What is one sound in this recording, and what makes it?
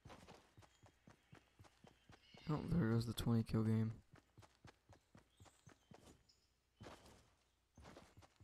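A game character's footsteps patter quickly over grass.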